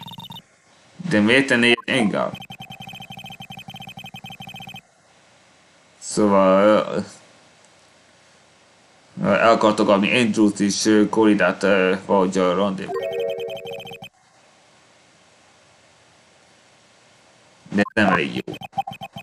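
A young man speaks with animation close to a webcam microphone.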